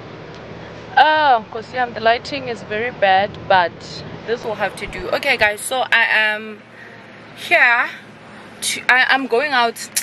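A young woman talks animatedly close to the microphone inside a car.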